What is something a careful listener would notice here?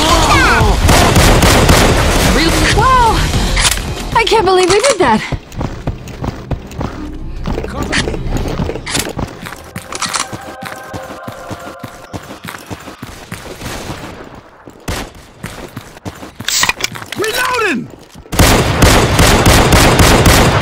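A rifle fires loud, echoing shots.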